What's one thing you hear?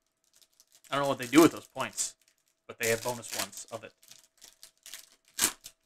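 A plastic sleeve crinkles as gloved hands handle it.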